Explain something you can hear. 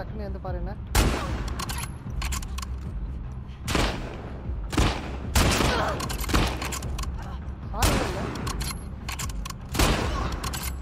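Rifle shots crack one after another, each followed by a rolling echo.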